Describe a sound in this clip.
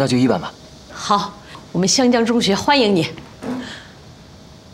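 A middle-aged woman speaks warmly and cheerfully close by.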